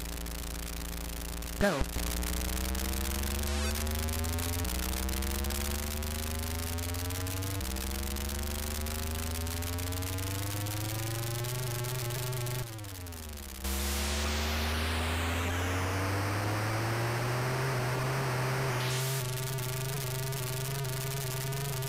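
A car engine revs, climbing in pitch and dropping with each gear change.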